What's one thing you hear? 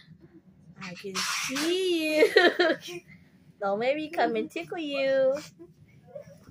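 A small dog whines and howls up close.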